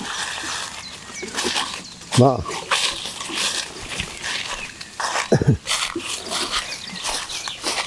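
Footsteps crunch through dry leaves and brush past branches.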